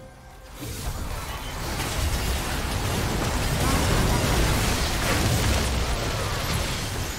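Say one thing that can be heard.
Game spells blast and crackle in a busy battle.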